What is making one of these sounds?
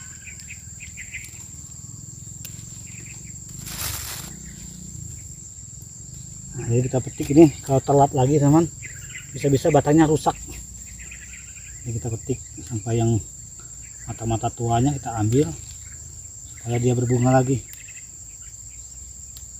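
Leaves rustle as chili peppers are picked from a plant.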